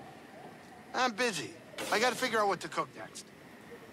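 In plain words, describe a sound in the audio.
A young man speaks casually nearby.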